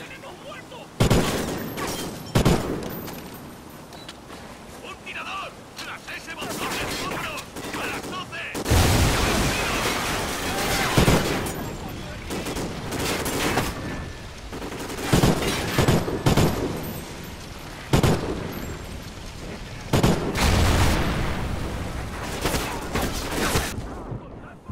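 Rifle shots ring out in loud, sharp bursts.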